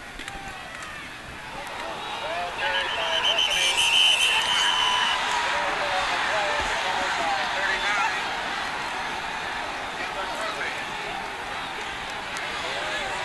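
A large crowd cheers and roars loudly in an open stadium.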